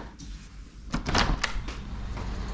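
A window latch clicks and the window swings open.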